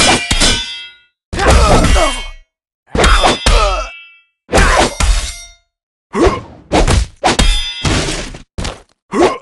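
Heavy blows strike with sharp impacts.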